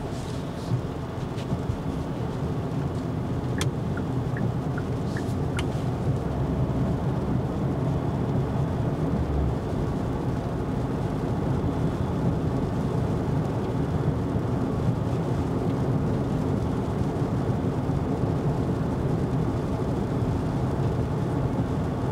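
Windscreen wipers sweep across the glass now and then.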